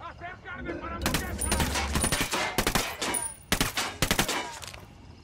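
A suppressed rifle fires a rapid burst of muffled shots.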